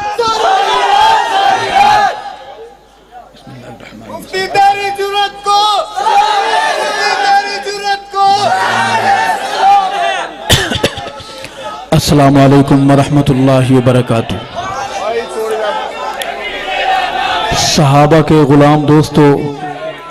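A man chants melodically into a microphone, heard through loudspeakers.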